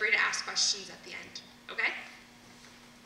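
A young woman speaks with animation through a microphone in a large hall.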